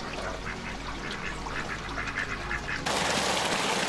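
A stream flows gently.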